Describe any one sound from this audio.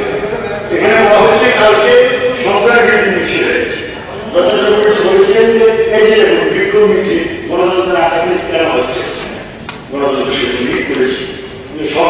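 A man speaks forcefully and with animation into a microphone in a large echoing hall.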